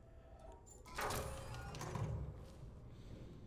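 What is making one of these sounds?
A heavy door slides open with a low rumble.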